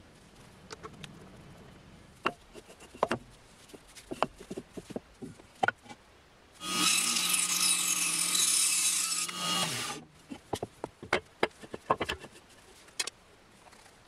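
Wooden blocks knock and thud as they are handled.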